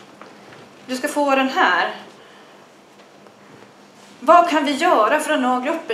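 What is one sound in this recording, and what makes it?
A woman speaks through a microphone in a room, pausing between phrases.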